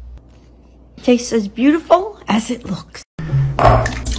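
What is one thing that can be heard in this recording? An elderly woman speaks with animation, close by.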